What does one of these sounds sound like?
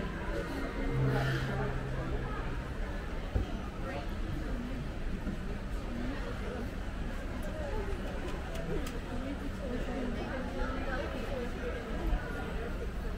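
Many people talk at a distance in a large echoing hall.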